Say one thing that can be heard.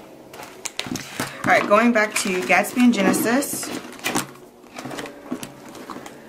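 Plastic and paper rustle and tap close by.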